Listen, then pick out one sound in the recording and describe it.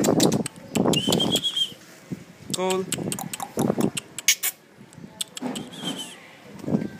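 A puppy whimpers softly.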